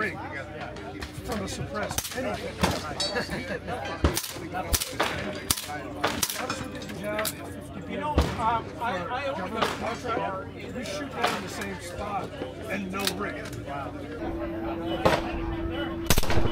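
Suppressed rifle shots pop sharply, one after another, outdoors.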